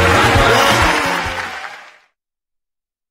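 A crowd sings loudly, then quickly fades away.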